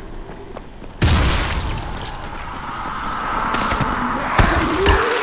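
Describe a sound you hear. Fire roars.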